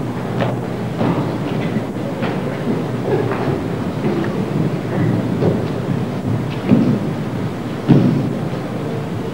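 Footsteps shuffle and thump across a wooden stage.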